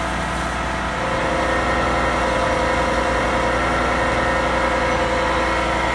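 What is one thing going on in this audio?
A fire engine's pump hums steadily nearby.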